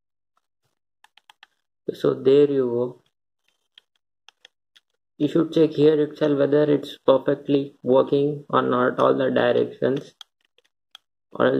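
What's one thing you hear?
Plastic controller buttons and a thumbstick click softly.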